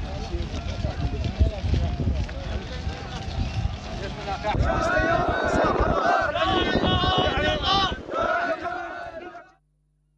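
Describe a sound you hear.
Footsteps of a crowd shuffle on a dirt road.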